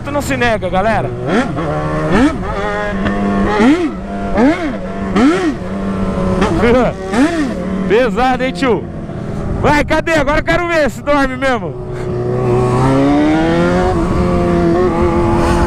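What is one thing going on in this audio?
A motorcycle engine revs up and down repeatedly at close range.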